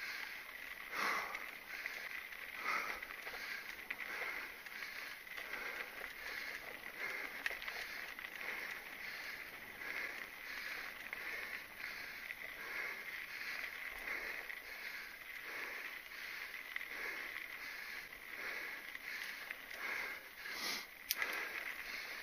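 A mountain bike rattles over bumps on the trail.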